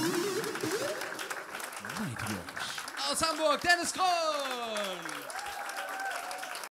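A young man speaks animatedly into a microphone, his voice gliding up and down in comic exaggeration.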